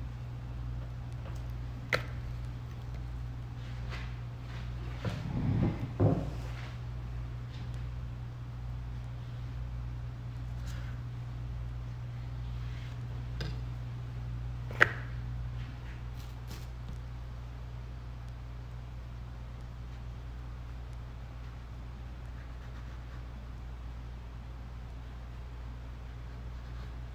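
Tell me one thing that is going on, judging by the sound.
A knife cuts through dough on a wooden board.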